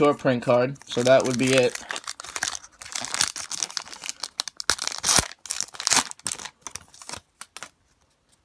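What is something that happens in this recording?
A foil wrapper crinkles and tears close by.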